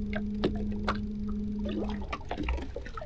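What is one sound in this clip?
An electric boat motor hums steadily, then stops.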